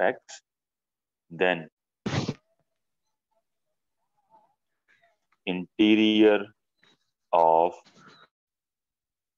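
A young man speaks calmly, close to the microphone, in short bursts.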